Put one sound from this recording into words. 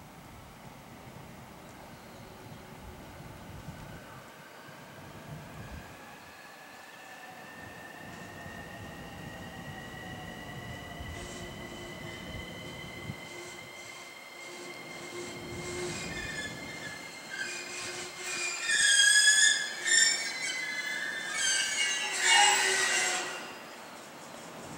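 An electric train approaches with a rising whine and rolls in to a stop.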